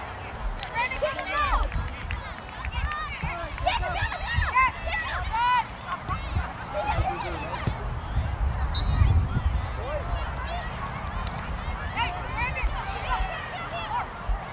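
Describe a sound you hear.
Children shout and call out excitedly across an open field.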